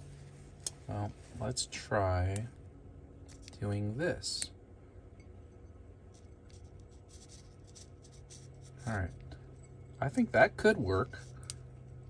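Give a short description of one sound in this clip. Metal rods clink softly against a glass.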